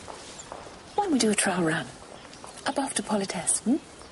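A woman speaks warmly, close by.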